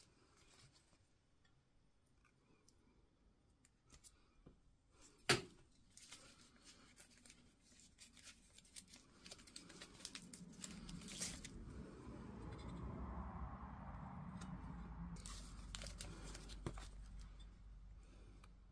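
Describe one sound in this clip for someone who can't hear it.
Battery cells click and clink softly as fingers press and pull at them.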